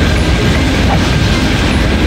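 A magical shield hums and crackles.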